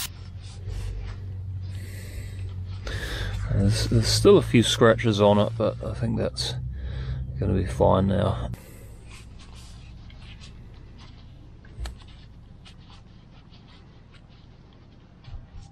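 A cloth rubs and squeaks against metal.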